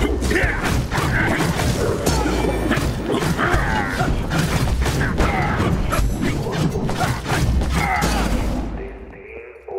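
Swords clash and slash in a loud fight with crunching hits.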